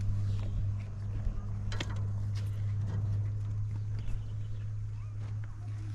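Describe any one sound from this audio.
A small child scrapes and shifts pebbles in dry dirt.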